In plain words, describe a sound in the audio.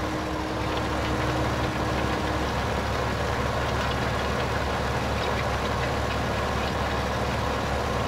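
A harrow rattles and scrapes through dry soil.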